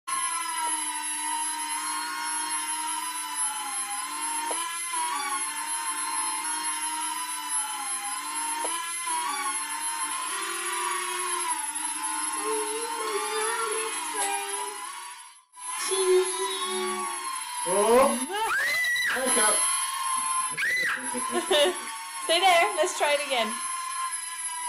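A small toy drone whirs steadily with a high buzzing hum.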